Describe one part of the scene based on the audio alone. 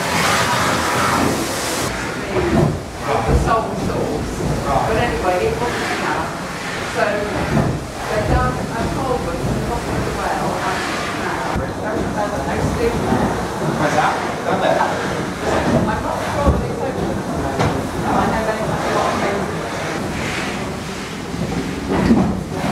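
Several adults murmur and chat quietly in the background.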